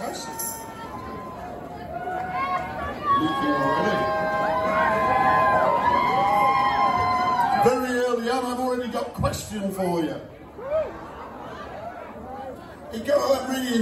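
A live band plays amplified music in a large echoing hall.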